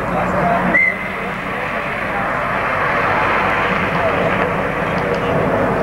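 A car engine revs loudly as the car drives past.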